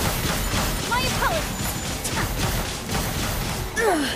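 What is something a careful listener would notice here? Magic blasts crackle and crash in rapid bursts.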